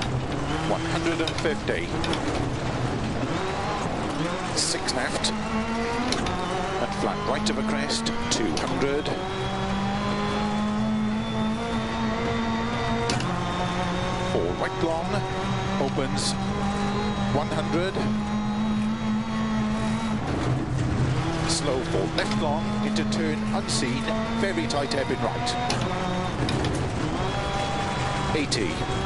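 Gravel sprays and rattles against the underside of a car.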